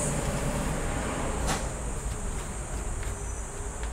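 A laptop's plastic casing clicks and rattles as a gloved hand handles it.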